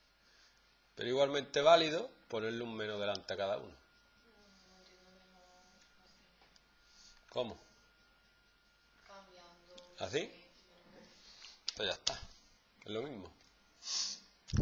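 A man explains calmly and clearly, close by.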